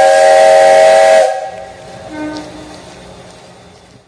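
A steam locomotive chugs slowly past.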